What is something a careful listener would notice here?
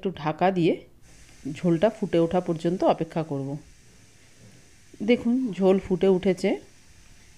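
Liquid bubbles and sizzles in a pan.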